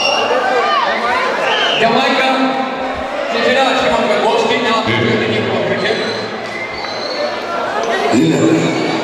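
An elderly man speaks loudly into a microphone.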